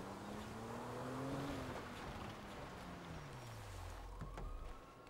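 A car engine hums and winds down.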